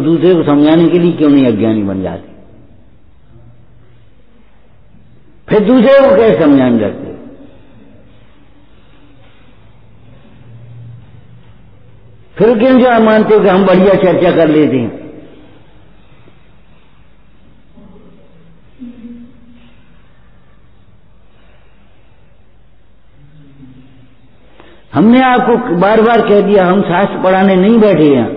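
An elderly man chants into a microphone in long drawn-out phrases, with pauses between them.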